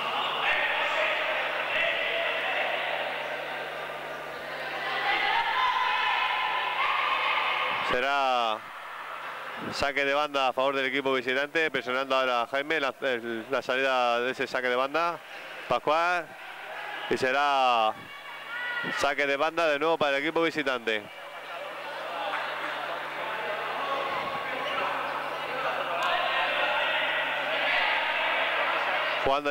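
Spectators cheer and shout in an echoing indoor hall.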